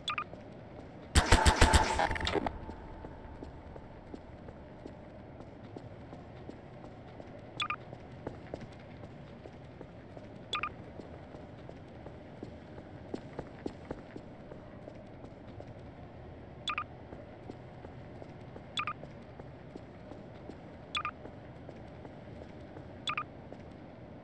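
A tool gun fires with short electronic zaps.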